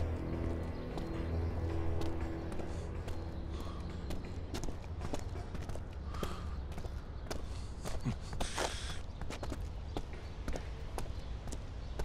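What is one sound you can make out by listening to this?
Footsteps walk on pavement outdoors.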